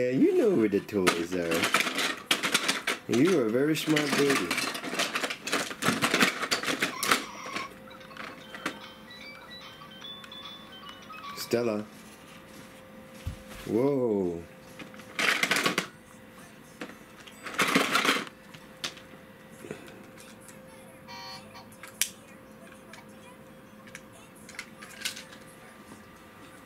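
Plastic toys clatter and rattle in a bin.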